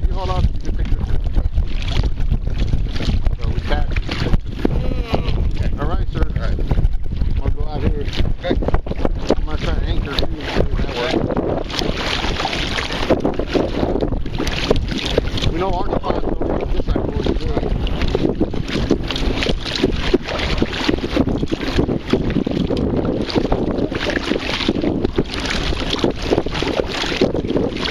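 A paddle splashes in the water in steady strokes.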